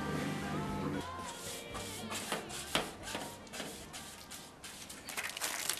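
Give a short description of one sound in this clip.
A broom brushes against a window.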